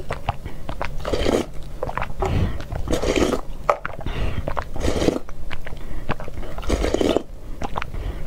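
A young woman slurps soft food loudly and close to a microphone.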